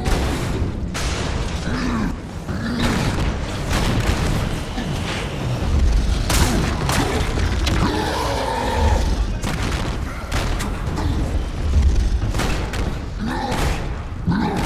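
Heavy punches thud and crash in quick bursts.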